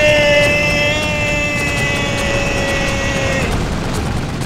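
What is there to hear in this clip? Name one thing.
A huge creature lets out a long, high screech.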